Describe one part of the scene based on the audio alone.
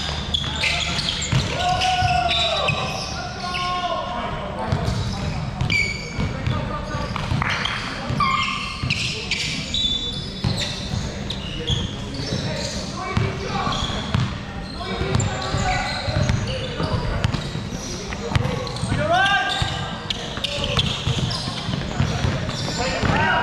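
Basketball shoes squeak sharply on a wooden court in a large echoing hall.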